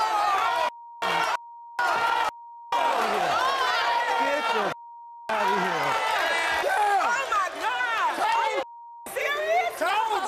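A woman shouts excitedly close by.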